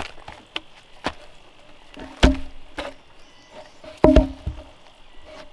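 A heavy wooden log knocks and thumps as it is rolled over.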